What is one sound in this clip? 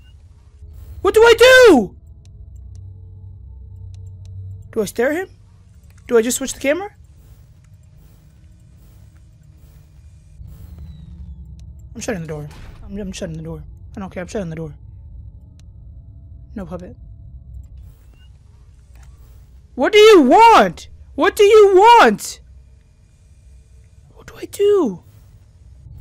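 A young woman talks expressively in short bursts into a close microphone.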